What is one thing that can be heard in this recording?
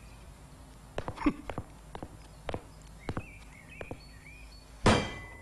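Objects knock and clatter on a desk.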